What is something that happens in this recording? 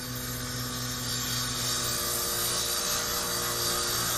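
A circular saw whines as it cuts through wood.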